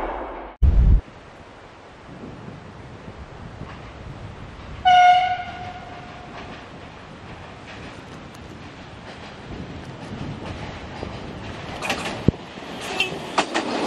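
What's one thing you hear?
A river rushes steadily over stones.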